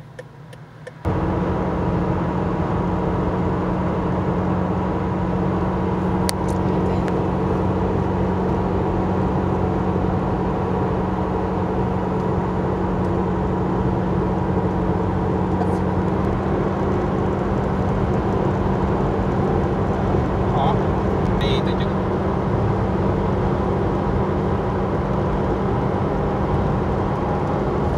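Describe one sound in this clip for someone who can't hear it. Tyres roar steadily on the highway.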